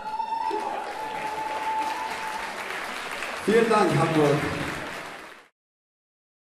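A crowd cheers and applauds in a large echoing hall.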